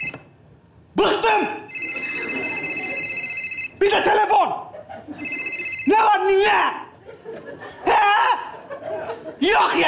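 A young man talks animatedly.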